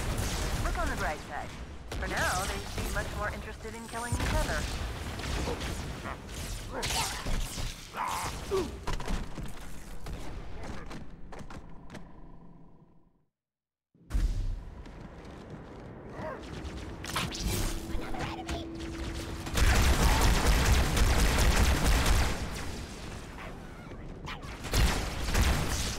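Energy weapons fire in rapid bursts with loud blasts.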